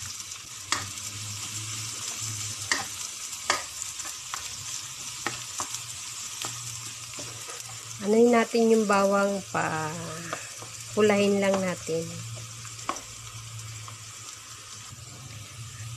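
A wooden spatula stirs and scrapes across a nonstick pan.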